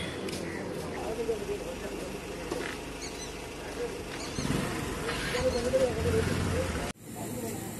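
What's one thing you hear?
A motorcycle engine runs nearby.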